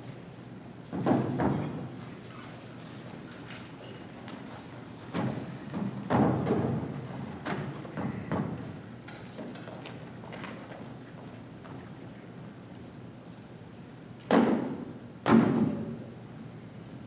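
Men call out loudly from a stage, their voices echoing through a large hall.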